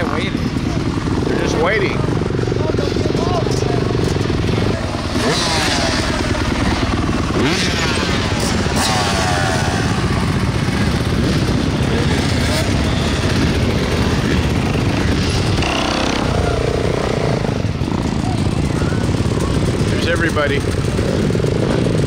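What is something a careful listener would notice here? Dirt bike engines whine as riders pull away.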